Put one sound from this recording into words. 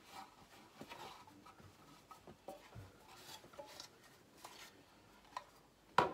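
A cloth rubs and squeaks against a metal tray.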